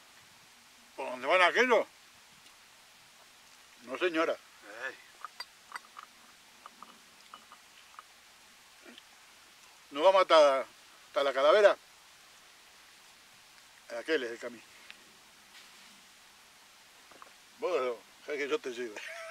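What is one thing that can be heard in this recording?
An elderly man talks with animation, close by, outdoors.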